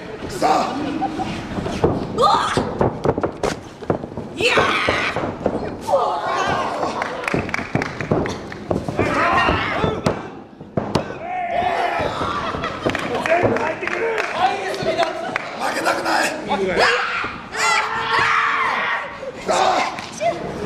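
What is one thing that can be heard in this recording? Bodies thud heavily onto a wrestling mat.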